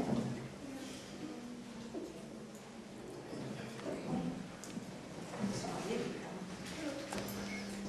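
A woman speaks softly to a young girl.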